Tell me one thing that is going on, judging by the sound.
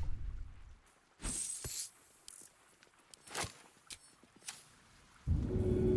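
Soft interface clicks sound as a menu opens and closes.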